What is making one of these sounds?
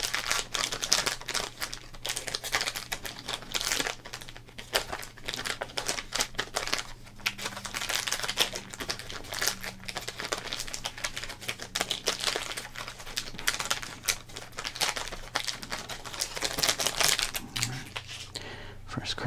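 A plastic wrapper crinkles and rustles loudly up close.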